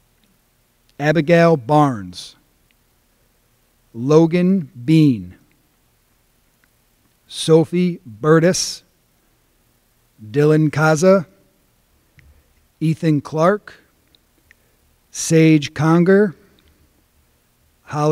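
A man reads out names one by one through a microphone, with pauses between them.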